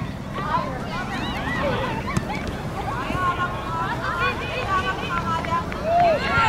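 Young women shout to each other across an open field in the distance.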